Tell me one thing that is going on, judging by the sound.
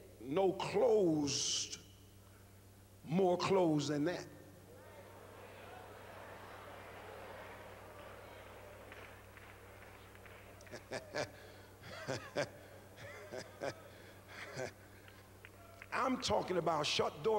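A man preaches with animation into a microphone in a large hall.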